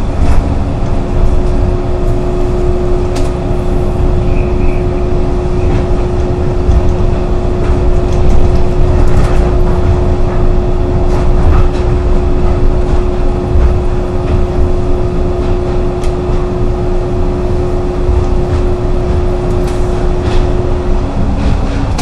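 An electric motor whines at a steady pitch, then stops.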